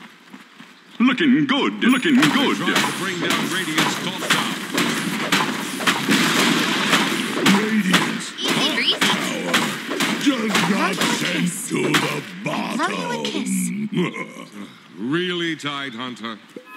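Rapid game battle sounds of spells and blows crackle and thud.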